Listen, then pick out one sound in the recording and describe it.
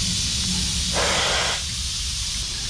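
Steam hisses sharply from a small locomotive in a short burst.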